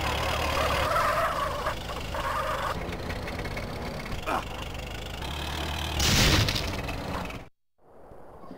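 A heavy vehicle crashes and scrapes against objects.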